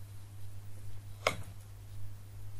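A wire clicks into a breadboard.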